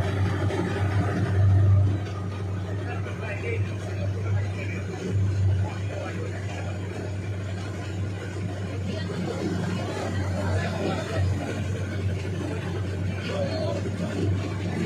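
Floodwater splashes and sloshes against a moving vehicle.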